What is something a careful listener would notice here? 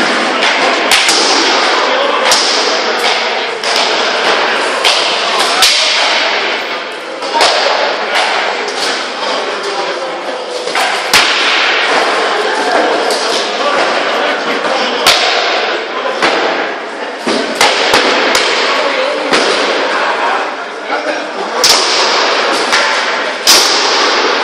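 Many voices murmur and call out in a large echoing hall.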